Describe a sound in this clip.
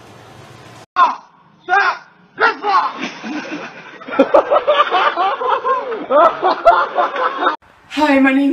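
Several young men laugh and shout outdoors.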